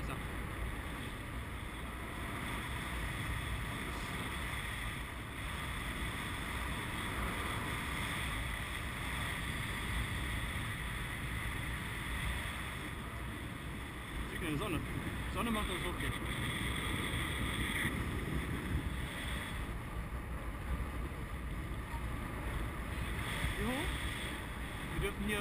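Wind rushes and buffets steadily, heard from high up in the open air.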